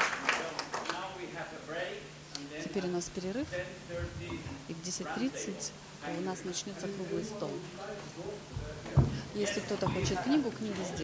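Several people talk and murmur in a crowd.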